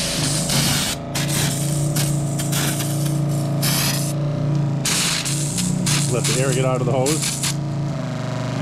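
Water sprays hard from a hose nozzle with a hiss.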